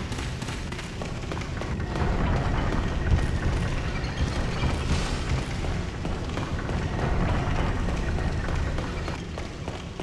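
Armoured footsteps run quickly on stone.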